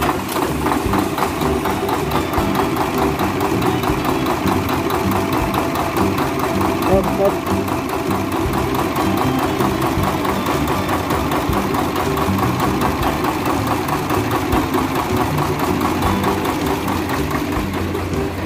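A large diesel engine idles with a steady, loud rattling clatter.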